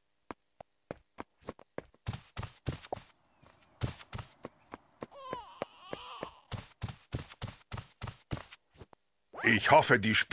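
Small footsteps patter quickly across a hard floor.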